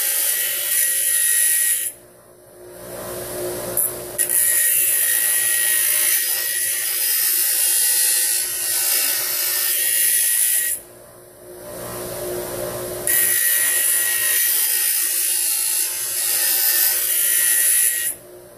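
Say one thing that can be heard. A bench grinder hums steadily as its wheel spins.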